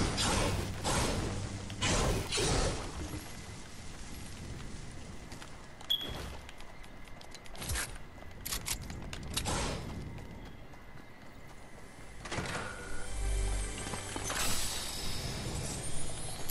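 A video game chest bursts open with chiming and clattering effects.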